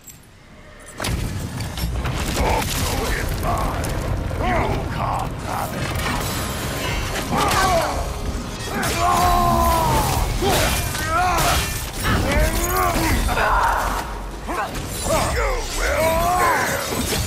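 Heavy weapon blows clang and thud in a close fight.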